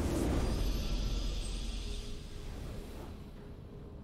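A triumphant fanfare plays.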